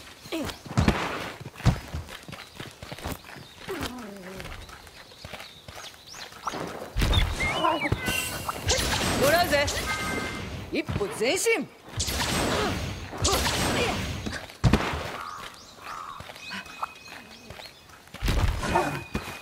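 Footsteps crunch over grass and rock.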